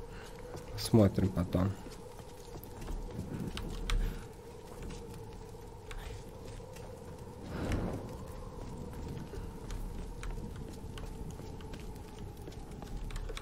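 Footsteps crunch on snow and grit.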